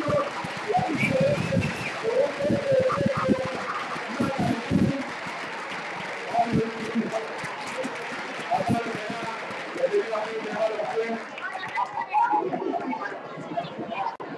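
A crowd of young people chatter and call out nearby.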